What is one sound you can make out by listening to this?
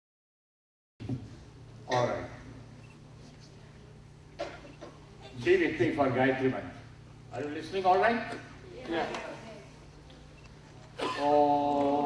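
A man speaks into a microphone with animation, heard through loudspeakers.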